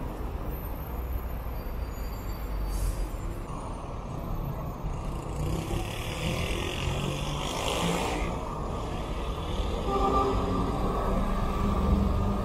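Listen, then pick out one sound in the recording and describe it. A bus engine rumbles low as a bus pulls away.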